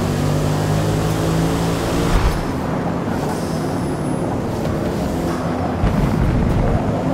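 A racing car engine roars and shifts gears.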